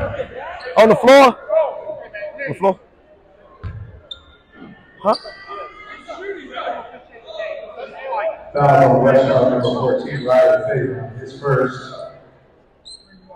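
Spectators nearby talk and call out in a gym with a slight echo.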